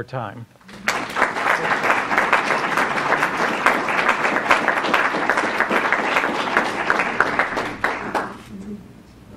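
A crowd claps and applauds loudly in a large room.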